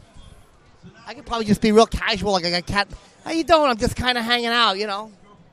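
A middle-aged man speaks loudly and with animation close to a microphone.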